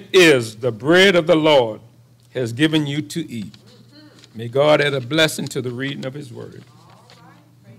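An elderly man reads out calmly through a microphone in an echoing room.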